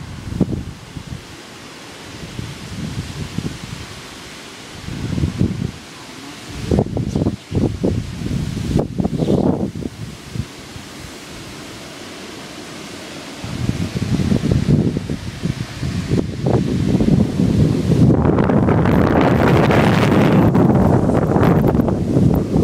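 Rain falls steadily outside.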